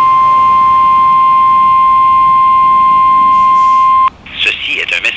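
A radio receiver sounds a loud, steady, high alert tone.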